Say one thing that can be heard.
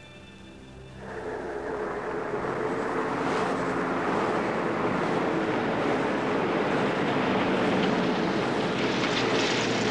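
A van engine hums as it drives by.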